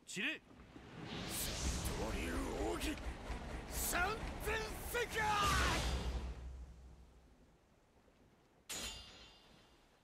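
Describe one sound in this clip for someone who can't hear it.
Swords swish and clash loudly.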